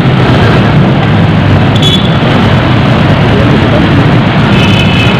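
A car drives through city traffic, with road noise heard from inside.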